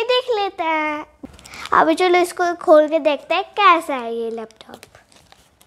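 A young girl speaks brightly and clearly up close.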